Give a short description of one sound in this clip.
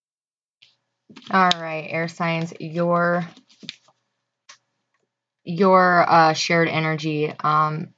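A card slides softly across a cloth tabletop.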